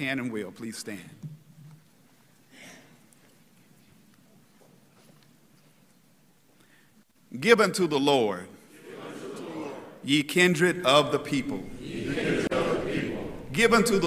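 A man preaches into a microphone, speaking with emphasis.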